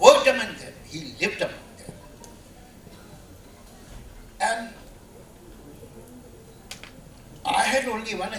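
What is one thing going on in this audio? An elderly man speaks with feeling into a microphone, in short bursts with pauses.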